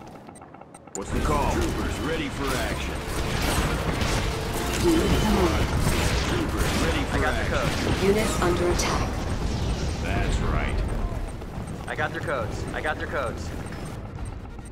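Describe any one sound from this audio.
Gunfire and explosions rattle in a busy battle.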